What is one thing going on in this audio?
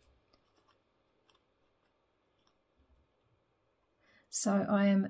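Paper rustles and taps softly as it is handled.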